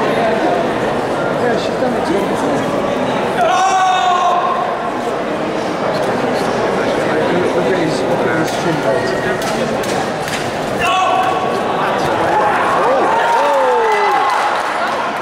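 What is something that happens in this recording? A crowd of spectators shouts and cheers loudly in a large echoing hall.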